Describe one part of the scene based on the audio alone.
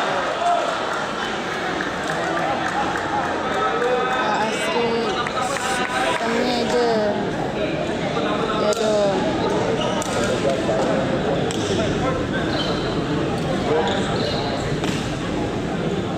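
A crowd chatters and calls out throughout a large echoing hall.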